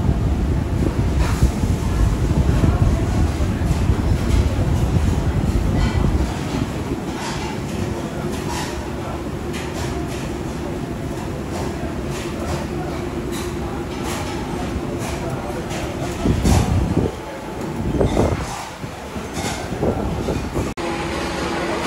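Metal tongs clink against metal skewers on a grill.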